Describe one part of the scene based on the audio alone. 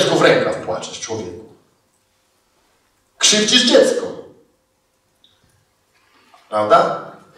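A middle-aged man speaks calmly into a microphone in a large room, with pauses between phrases.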